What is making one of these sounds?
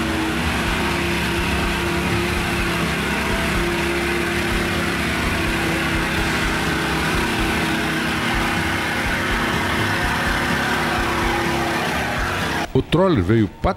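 An off-road vehicle's engine runs steadily as it crawls through mud.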